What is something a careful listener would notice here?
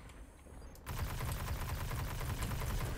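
A gun fires rapid energy shots.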